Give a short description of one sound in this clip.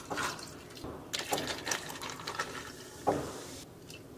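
Water pours over ice.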